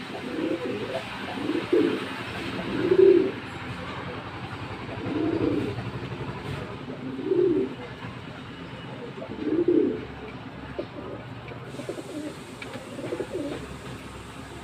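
Pigeons coo in low, throaty bursts close by.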